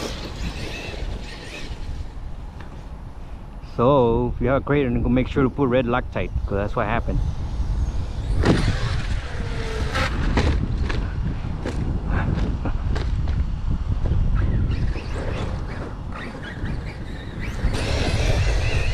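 Wind blusters over the microphone outdoors.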